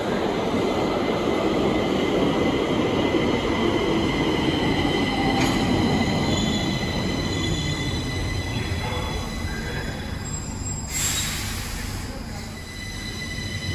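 A subway train rumbles into an echoing underground station and slows down.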